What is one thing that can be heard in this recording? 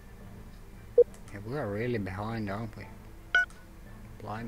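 Short soft beeps sound from a game's menu as options are selected.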